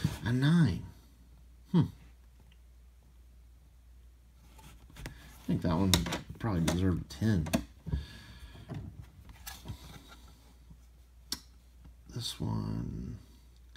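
A hard plastic case taps and clicks as hands handle it.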